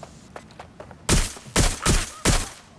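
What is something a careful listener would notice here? A stun weapon crackles and zaps in quick bursts.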